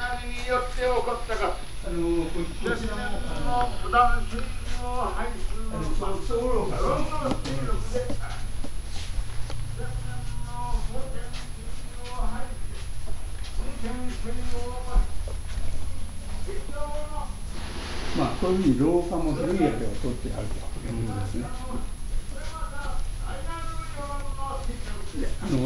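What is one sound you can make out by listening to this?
Several adults talk nearby.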